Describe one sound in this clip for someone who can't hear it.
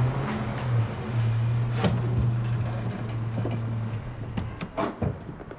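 A car engine idles nearby with a low, steady hum.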